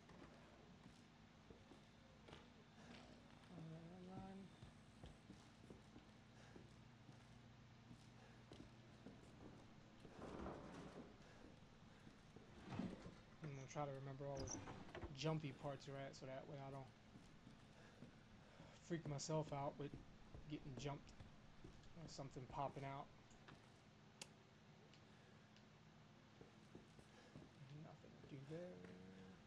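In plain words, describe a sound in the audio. Footsteps creak on a wooden floor.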